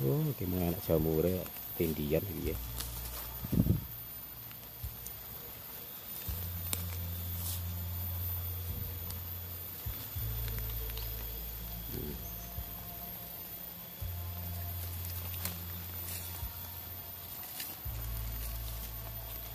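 Dry leaves rustle and crunch underfoot nearby.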